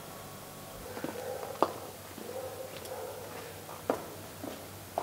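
Heeled shoes click on a paved path as a woman walks away.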